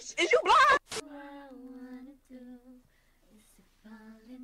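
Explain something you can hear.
A young woman sings softly in a high voice.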